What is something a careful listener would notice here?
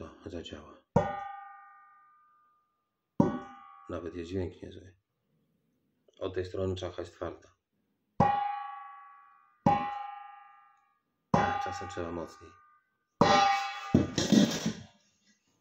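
A metal bowl rings out when struck, with a long fading tone.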